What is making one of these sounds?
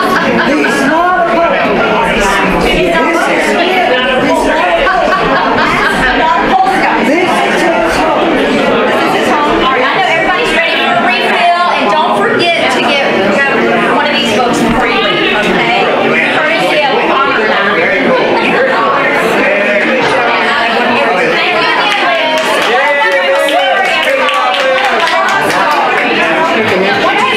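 A group of men and women chat and talk over one another nearby.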